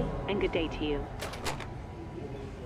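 A phone handset clunks down onto its hook.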